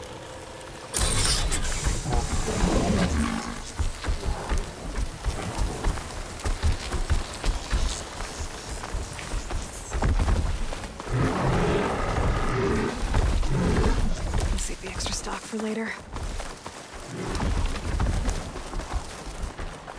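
Footsteps rustle through dry grass and crunch in snow.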